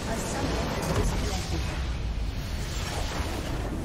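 A large structure explodes with a deep rumbling blast.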